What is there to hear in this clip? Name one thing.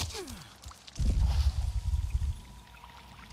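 A body plunges into water with a heavy splash.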